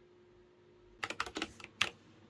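A computer mouse clicks several times in quick succession.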